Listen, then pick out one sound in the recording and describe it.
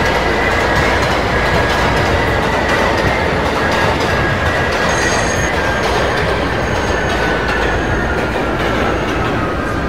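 Train wheels screech on the rails as the train slows down.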